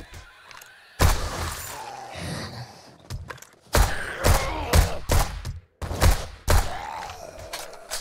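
A gun fires rapid, loud shots.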